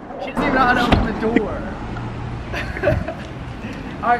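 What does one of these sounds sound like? A car door swings open with a click.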